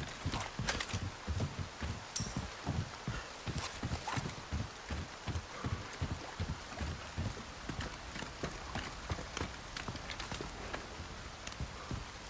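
Heavy footsteps thud steadily on wooden boards and stairs.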